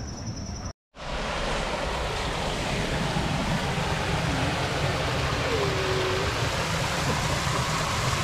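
A small waterfall splashes steadily into a pond.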